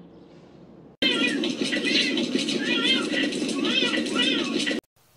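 Two cats yowl as they fight.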